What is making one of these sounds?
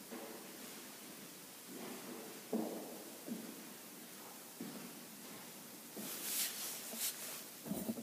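An elderly woman's footsteps tap on a hard floor.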